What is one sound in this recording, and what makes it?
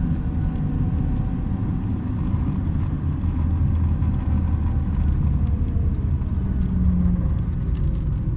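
Tyres roar on the road.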